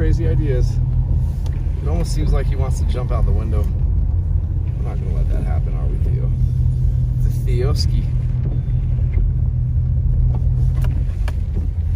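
Rain patters on a car windscreen.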